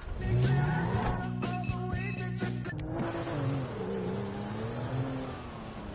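A car engine hums while driving off.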